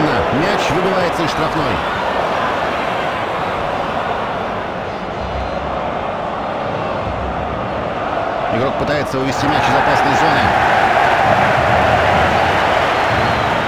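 A stadium crowd roars steadily, swelling louder partway through.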